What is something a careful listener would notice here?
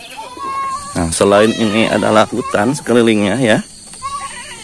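Goats bleat loudly nearby.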